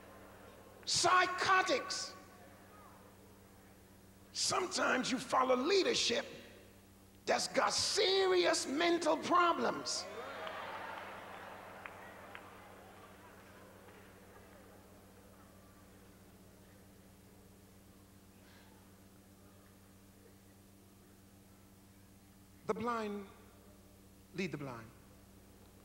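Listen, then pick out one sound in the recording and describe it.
A man preaches loudly and with animation into a microphone in a large echoing hall.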